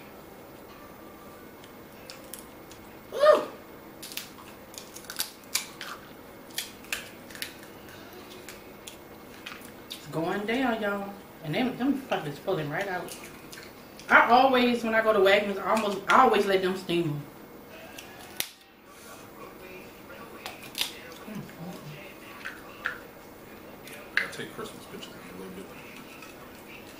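Shells crack and snap as seafood is peeled by hand.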